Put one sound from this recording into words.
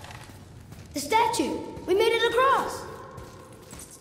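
A boy speaks with animation.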